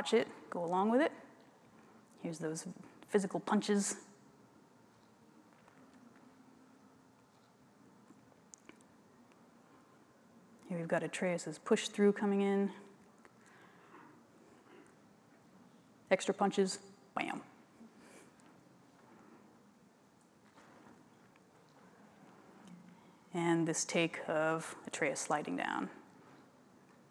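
A woman speaks calmly into a microphone, pausing between phrases.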